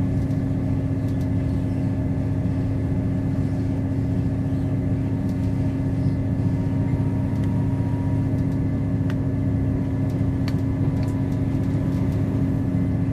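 Loose fittings in a bus interior rattle and click now and then.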